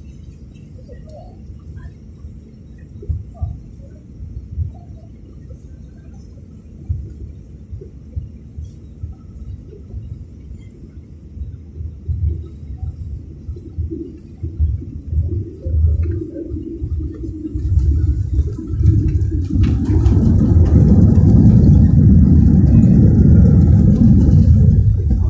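A jet airliner's engines drone steadily from inside the cabin.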